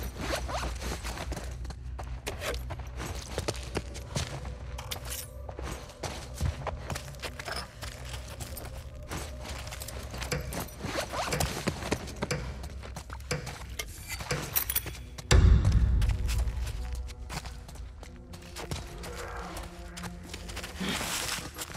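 Footsteps shuffle across a hard floor.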